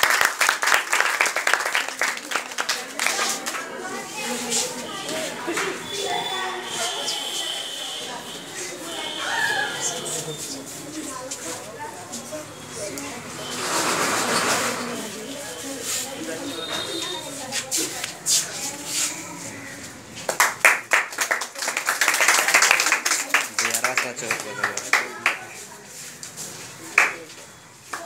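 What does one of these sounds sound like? Several young people and men talk and call out nearby.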